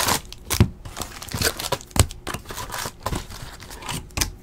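Cardboard cards shuffle and slide against each other.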